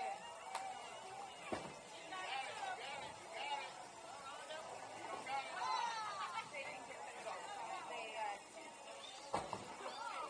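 A crowd of men and women chatter and call out nearby in a busy, echoing room.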